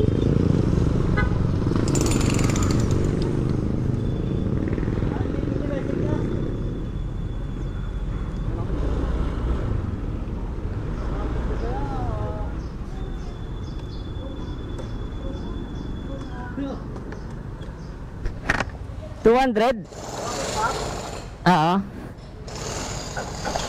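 A motor scooter engine idles with a low rumble.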